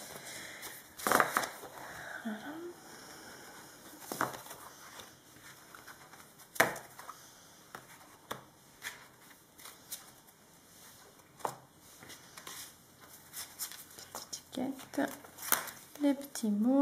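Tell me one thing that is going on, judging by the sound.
Paper sheets rustle and slide as hands handle them.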